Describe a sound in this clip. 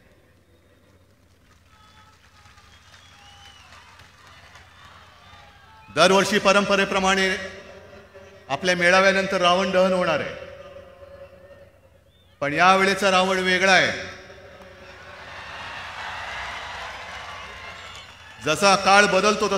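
A large outdoor crowd cheers and roars.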